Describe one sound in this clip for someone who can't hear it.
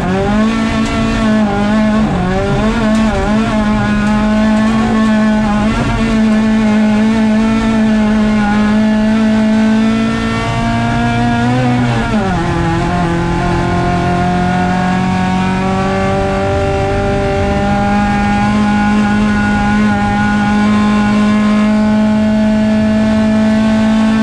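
A rally car engine roars loudly at high revs, rising and dropping in pitch as the gears change.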